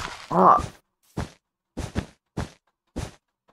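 Blocks are placed with short, soft thuds in quick succession.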